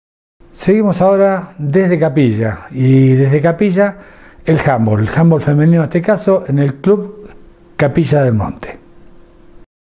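An older man speaks calmly and close to a microphone.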